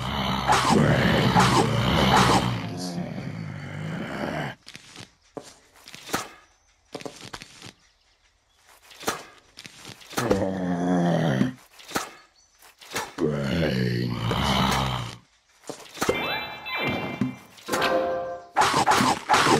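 Cartoon plants chomp with short snapping sounds.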